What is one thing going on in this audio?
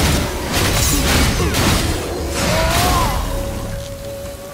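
Icy magic blasts and crackles in a fight.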